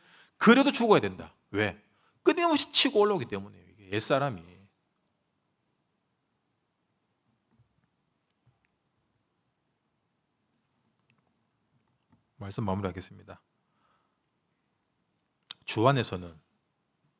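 A young man speaks calmly into a microphone with long pauses.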